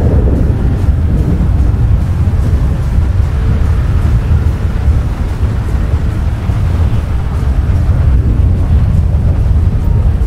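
A truck engine rumbles as the truck drives over rough ground.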